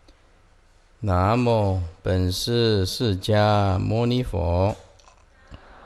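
An elderly man chants slowly and loudly into a microphone.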